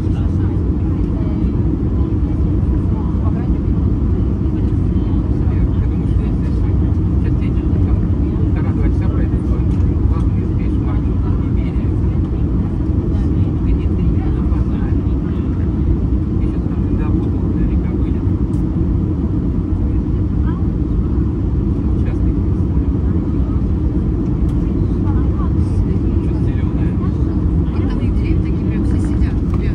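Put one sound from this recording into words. A jet engine roars steadily close by, heard from inside the cabin.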